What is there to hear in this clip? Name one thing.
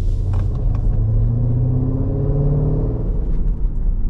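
A car engine hums low and rises in pitch as the car speeds up.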